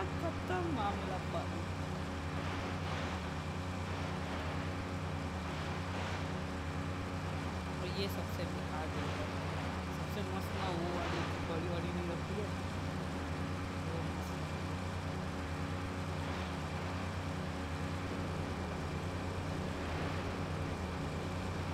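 Water splashes and hisses under a speeding boat.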